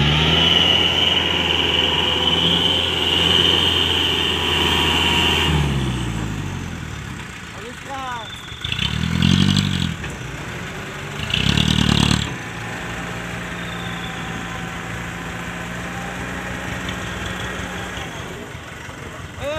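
A truck engine rumbles steadily and revs up loudly a few times.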